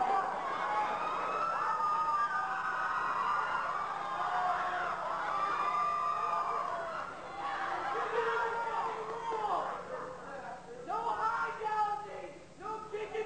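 Young men sing and shout loudly in a large echoing hall.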